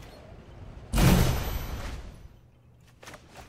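A bright magical whoosh sounds and fades.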